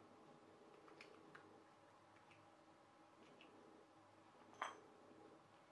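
Small plastic parts of a clockwork toy motor click in the hands.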